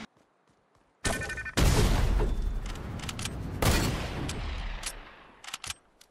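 A weapon swings with a loud, crackling whoosh.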